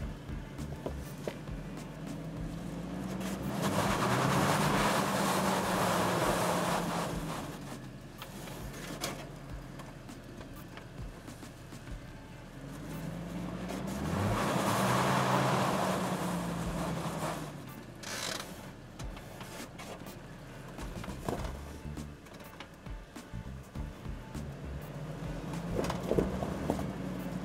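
An engine revs hard as an off-road vehicle climbs a rocky slope.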